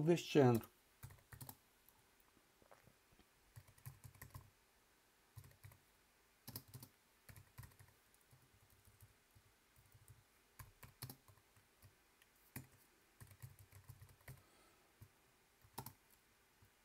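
Computer keys click softly.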